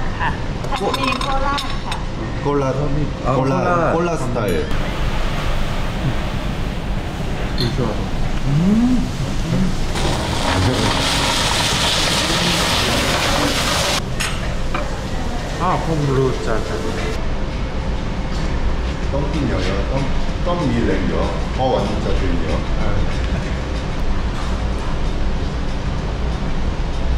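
Young men talk casually close by.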